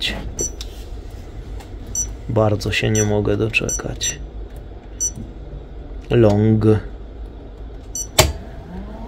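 Buttons on an electronic device click as they are pressed.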